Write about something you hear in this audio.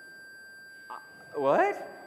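A man speaks to an audience through a microphone in a large hall.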